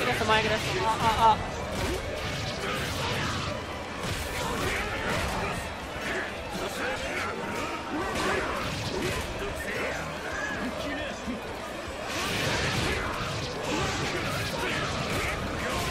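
Video game fighting blows and magic blasts thud and crackle rapidly.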